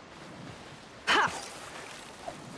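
A fishing line whips out with a swish.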